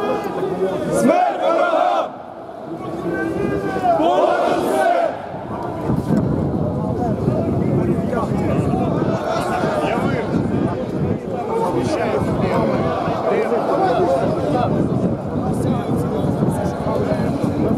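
A crowd of men and women chant and shout loudly outdoors.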